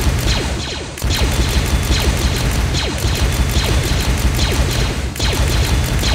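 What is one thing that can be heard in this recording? A helicopter's rotor whirs with a fast, steady thumping.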